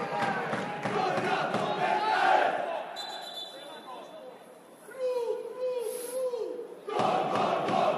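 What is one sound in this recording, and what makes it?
Men on a football pitch shout to each other, heard from a distance outdoors.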